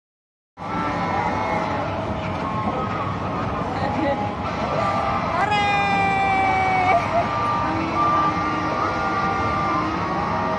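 A coin-operated kiddie ride plays a tinny electronic tune.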